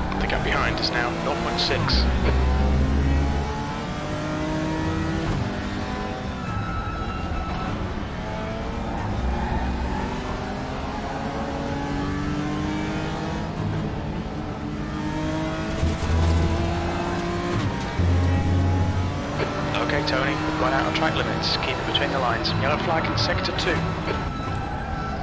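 Tyres squeal through corners.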